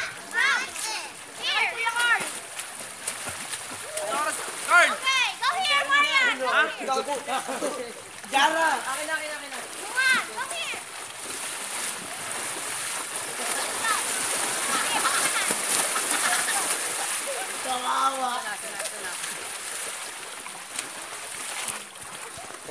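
Children shout and squeal playfully outdoors.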